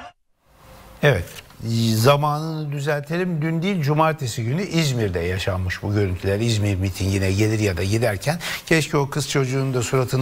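An elderly man speaks calmly into a studio microphone.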